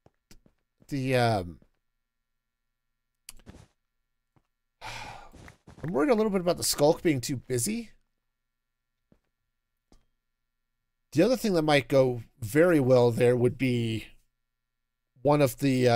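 A man talks with animation through a close microphone, in short bursts with pauses.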